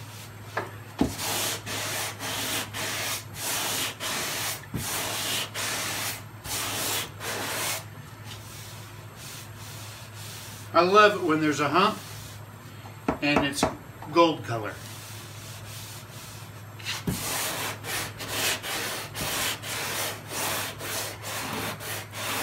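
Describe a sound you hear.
A sanding block rasps back and forth on a car door in quick strokes.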